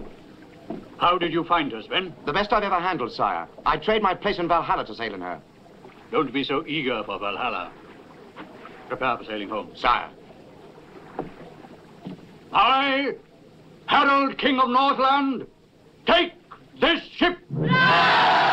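An elderly man speaks in a loud, commanding voice.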